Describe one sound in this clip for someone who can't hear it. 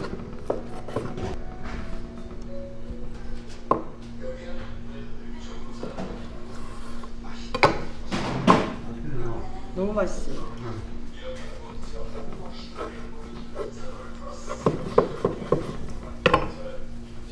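A knife thuds against a wooden cutting board.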